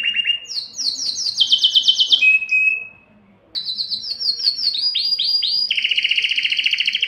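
A canary sings close by in rapid trills and chirps, with a short pause.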